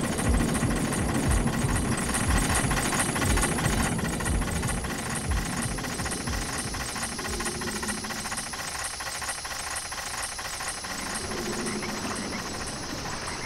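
A metal cage lift rumbles and clanks as it moves.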